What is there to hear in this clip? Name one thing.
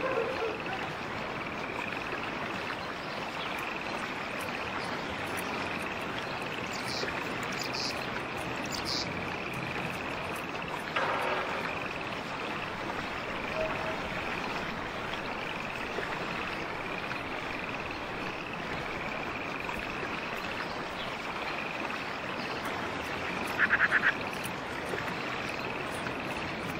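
Footsteps tread steadily on a hard surface.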